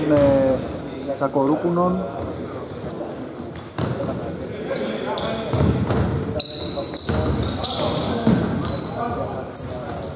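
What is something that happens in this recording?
Men shout to each other.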